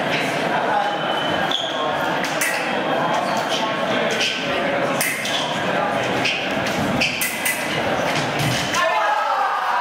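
Fencing blades clash and click.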